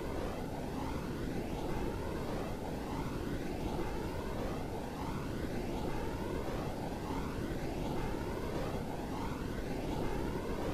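Wind rushes steadily past a ski jumper flying through the air.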